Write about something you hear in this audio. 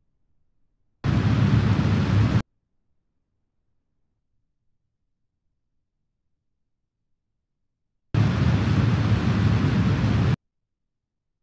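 A rocket engine roars in short bursts.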